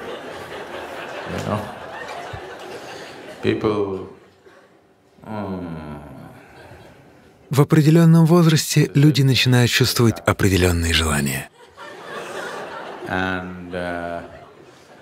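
An elderly man speaks calmly and expressively into a microphone.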